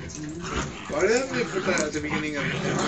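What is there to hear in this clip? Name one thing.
A puppy whines and yelps in a high voice.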